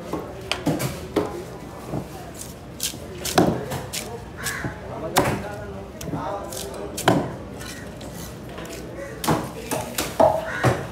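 A large knife chops and thuds into a fish on a wet surface.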